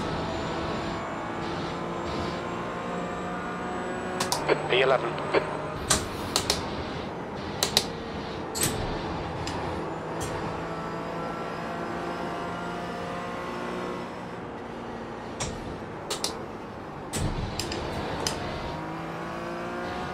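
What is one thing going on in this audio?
A racing car engine drones and revs up and down through the gears.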